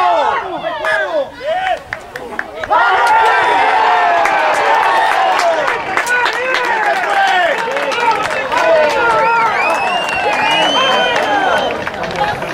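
A crowd of men and women shout and cheer loudly close by, outdoors.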